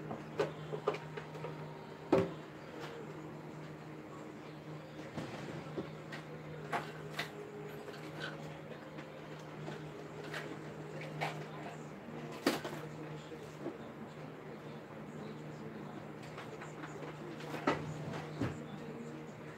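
Metal pots and utensils clatter and knock.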